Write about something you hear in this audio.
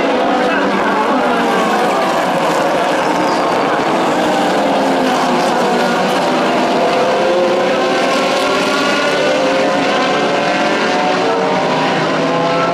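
Many racing car engines roar loudly together, their pitch rising and falling as the pack passes.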